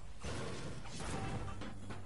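A gun fires a shot.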